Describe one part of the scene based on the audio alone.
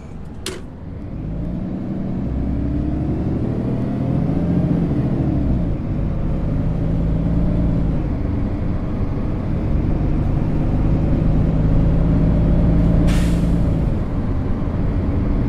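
A bus engine hums and rises in pitch as the bus pulls away.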